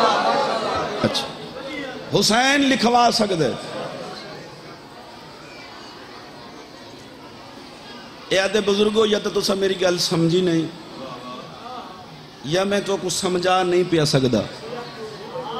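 A man chants loudly and passionately into a microphone over loudspeakers, with an echo.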